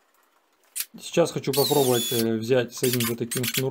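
A power drill whirs as it drives a screw into wood.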